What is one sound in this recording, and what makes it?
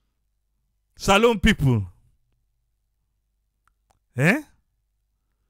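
An elderly man speaks through a microphone in short bursts.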